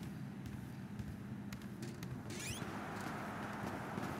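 Doors swing open.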